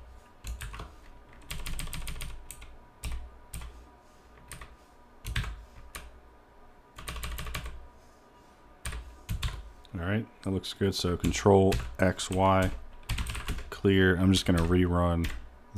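Keys on a keyboard clack in quick bursts of typing.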